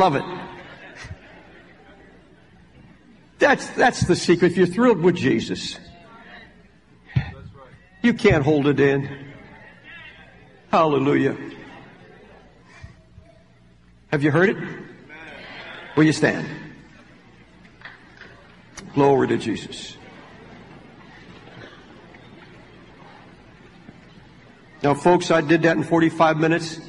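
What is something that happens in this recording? An elderly man preaches with feeling through a microphone, in bursts broken by pauses.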